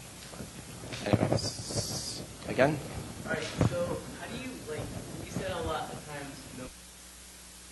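A man speaks with animation through a microphone in a large room.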